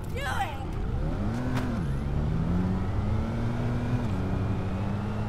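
A car engine revs up and hums steadily as the car speeds along.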